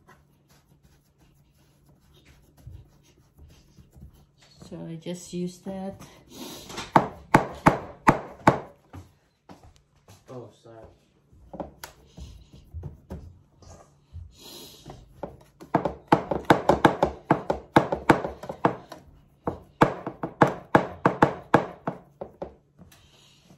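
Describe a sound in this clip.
Fingers press crumbly dough into a metal baking tray with soft tapping and scraping.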